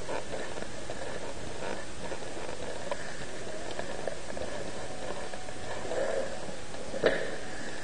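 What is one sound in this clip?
Footsteps echo on a hard floor in a large, reverberant space.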